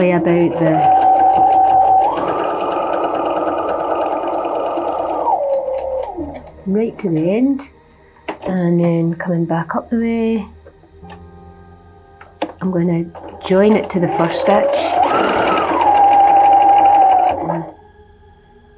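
A sewing machine whirs as it stitches quickly, speeding up and slowing down.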